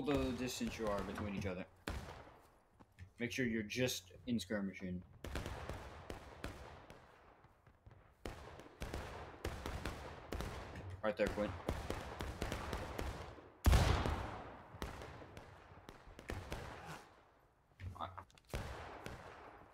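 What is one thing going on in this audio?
Gunshots crack and echo across open ground.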